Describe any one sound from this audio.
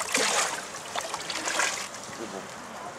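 Water splashes as a tub is emptied into a lake.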